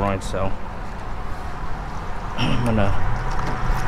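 A truck tailgate latch clicks and the tailgate swings open with a clunk.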